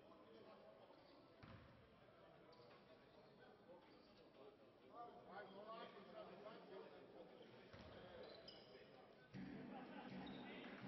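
Spectators and players shout and call out in an echoing hall.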